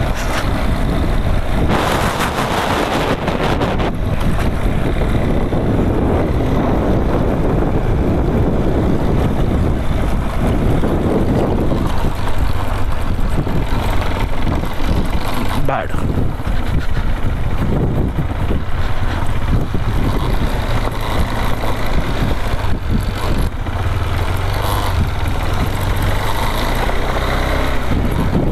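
A single-cylinder adventure motorcycle engine runs while riding along a dirt trail.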